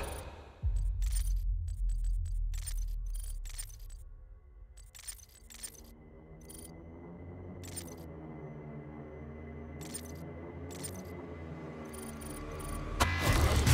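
Menu clicks tick softly.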